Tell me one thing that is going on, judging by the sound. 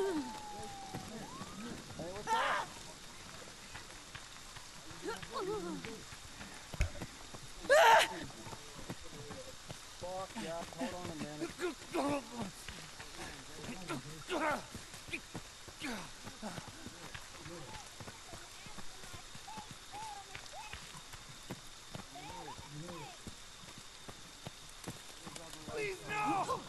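Footsteps thud on the ground as a figure runs.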